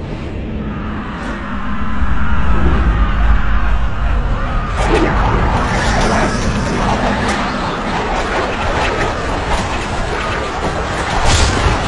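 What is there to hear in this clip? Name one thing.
Arrows whoosh through the air in a dense volley.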